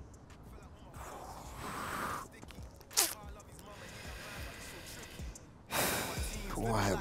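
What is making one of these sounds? A young man breathes heavily and sobs.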